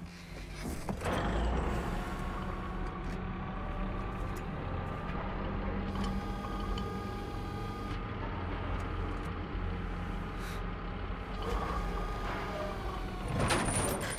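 A crane's motor hums steadily.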